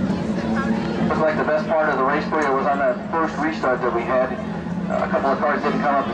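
A young man answers questions into a microphone.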